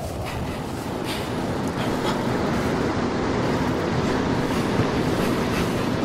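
Steam hisses loudly from a pipe.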